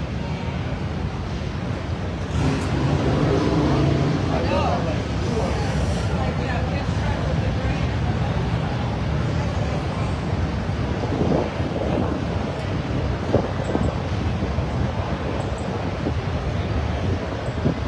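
A crowd of men and women chatter all around in a large echoing tent.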